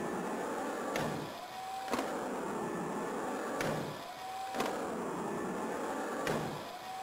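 A skateboard clacks down sharply on landing.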